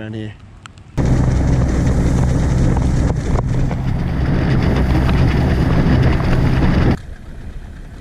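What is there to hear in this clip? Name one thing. An outboard motor roars loudly close by.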